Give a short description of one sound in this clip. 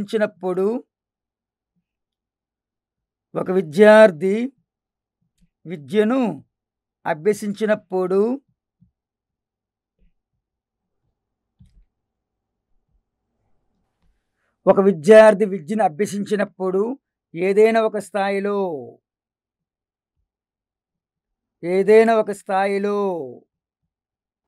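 A middle-aged man speaks calmly into a close microphone, pausing between phrases.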